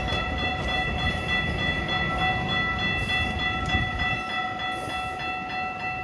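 A passenger train rumbles and clatters past close by.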